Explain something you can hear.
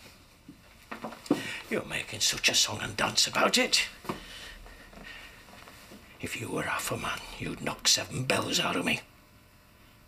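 An elderly man speaks tensely, close by.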